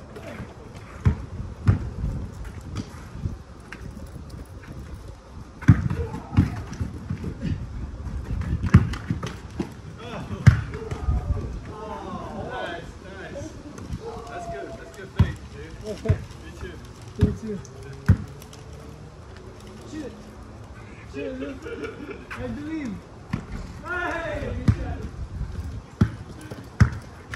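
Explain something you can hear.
A basketball bounces on an outdoor sport court.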